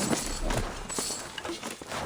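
Steam hisses from a cooking pot.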